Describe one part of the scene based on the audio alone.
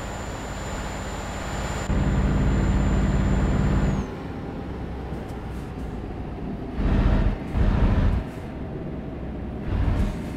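A truck engine hums steadily while driving on a highway.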